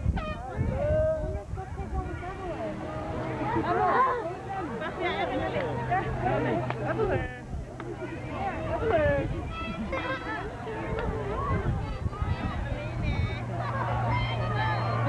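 Many voices of an outdoor crowd chatter.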